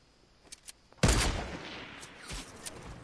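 A sniper rifle fires a loud shot in a game.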